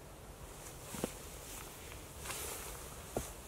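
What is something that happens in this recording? A wooden pole knocks sharply against wood.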